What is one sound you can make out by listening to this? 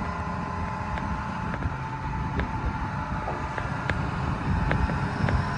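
An excavator's hydraulics whine.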